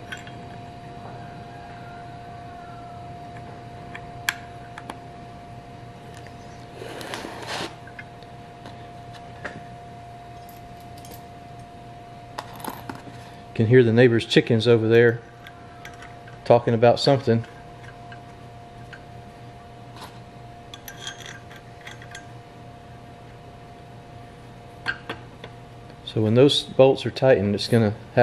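Metal parts clink and scrape softly as they are handled.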